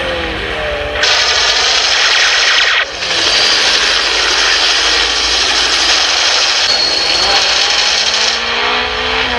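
A helicopter's rotor thuds and its engine roars overhead.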